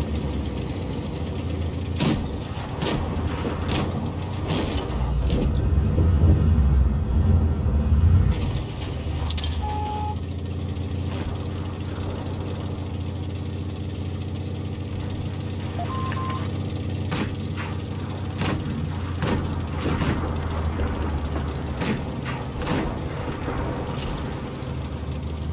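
A tank engine rumbles steadily, loud and low.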